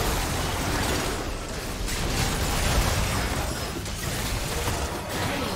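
Magical spell effects whoosh and crackle in a video game battle.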